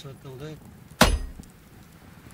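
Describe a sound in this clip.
A heavy wooden object thuds down onto the ground.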